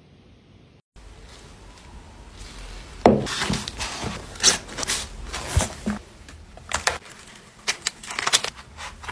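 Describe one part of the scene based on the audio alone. A plastic sleeve crinkles as it is handled.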